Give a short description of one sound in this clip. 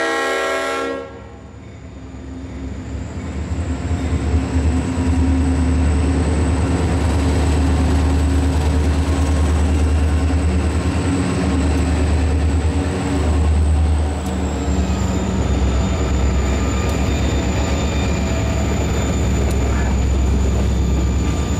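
A diesel locomotive engine rumbles deeply as it passes close by.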